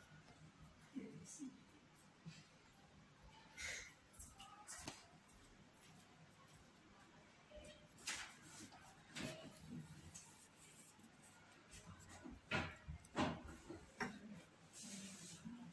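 A hand rubs and presses on fabric with a soft rustle.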